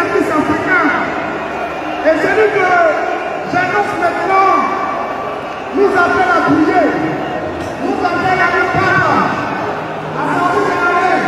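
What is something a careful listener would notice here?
A large crowd cheers and chants loudly in an open stadium.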